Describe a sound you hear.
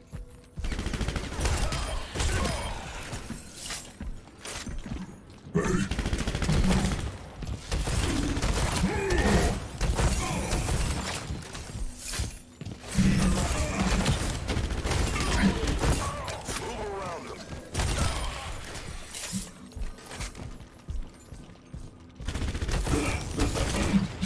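A heavy gun fires rapid bursts.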